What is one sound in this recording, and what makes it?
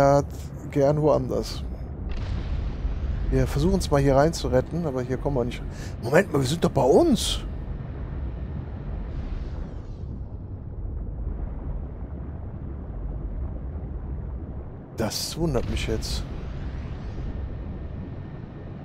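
A low underwater rumble drones steadily.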